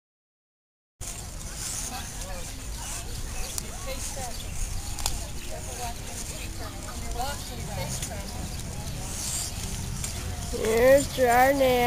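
Women and men chatter and call out nearby outdoors.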